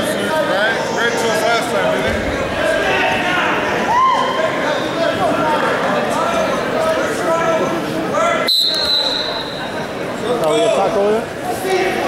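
A crowd of spectators shouts and cheers in a large echoing gym.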